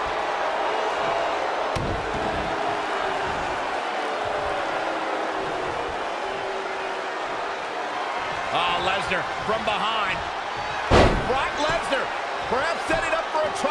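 A large crowd cheers and murmurs in an echoing arena.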